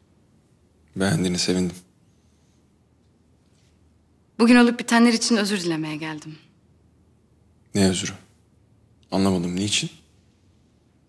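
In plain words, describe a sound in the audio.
A man speaks in a low, calm voice up close.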